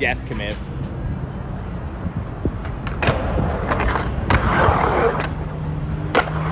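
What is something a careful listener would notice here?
Skateboard wheels roll and rumble on concrete.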